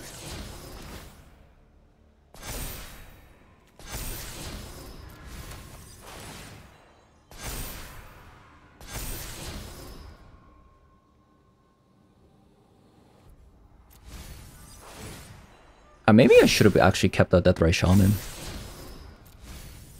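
Digital card game sound effects whoosh and chime in short bursts.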